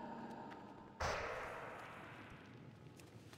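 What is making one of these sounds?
A magical whoosh bursts out and fades.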